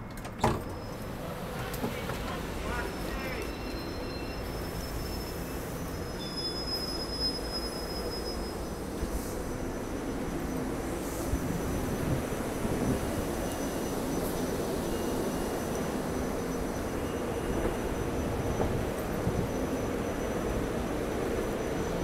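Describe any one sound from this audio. Footsteps walk across a platform outdoors.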